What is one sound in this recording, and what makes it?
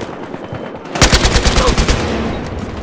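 An assault rifle fires a rapid burst of gunshots.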